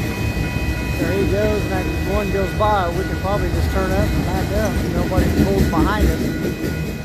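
Train wheels squeal and screech on the rails.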